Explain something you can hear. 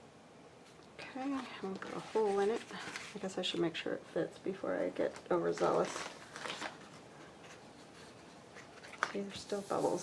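Paper rustles and crinkles as it is handled and folded.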